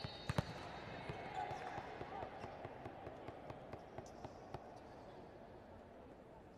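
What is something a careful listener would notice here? A ball bounces on the floor several times.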